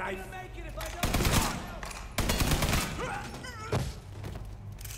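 Loud gunshots bang out in quick bursts.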